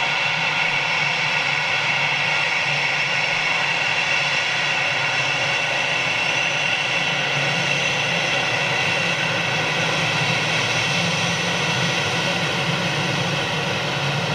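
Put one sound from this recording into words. A jet engine whines steadily as an airliner taxis close by.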